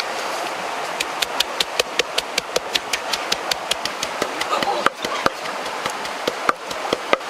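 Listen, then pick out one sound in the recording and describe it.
A wooden pestle pounds rhythmically in a wooden mortar.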